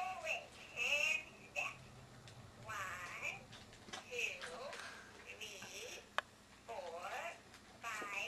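An electronic toy chatters in a high, squeaky voice.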